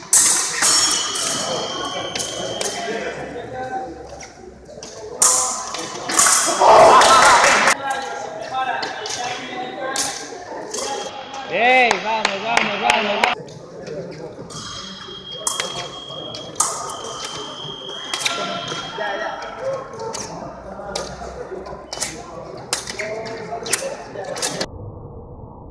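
Blades clash and click sharply.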